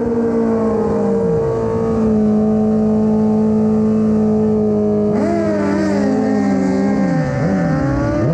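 A motorcycle engine drones loudly and revs up and down.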